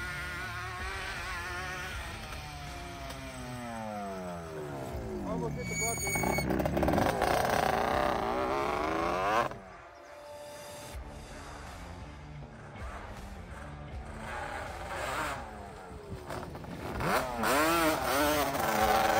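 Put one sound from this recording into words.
A quad bike engine revs loudly, its pitch rising and falling as it passes close by.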